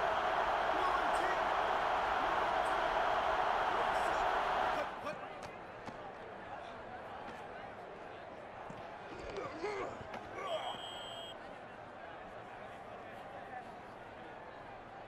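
A stadium crowd roars loudly, then drops to a low murmur.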